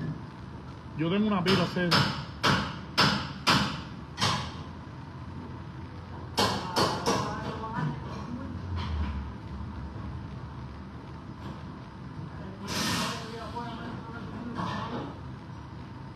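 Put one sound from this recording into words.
A middle-aged man speaks calmly close by, in short bursts.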